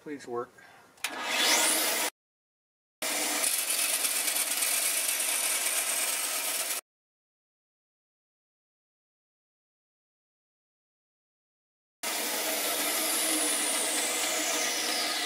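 A band saw runs with a steady high whir.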